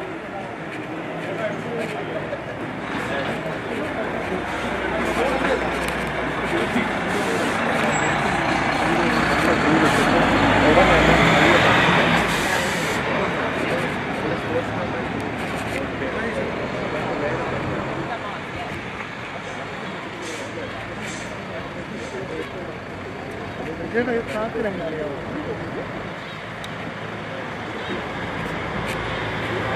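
Men and women talk quietly nearby.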